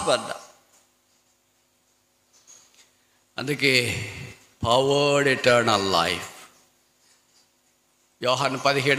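A man preaches forcefully through a microphone, with pauses between phrases.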